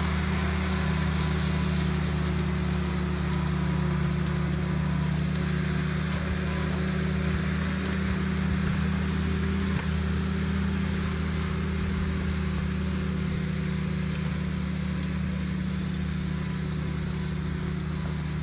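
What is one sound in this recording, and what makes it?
A small tractor engine chugs steadily nearby.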